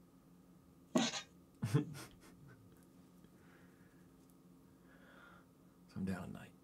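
A young man laughs softly close to a microphone.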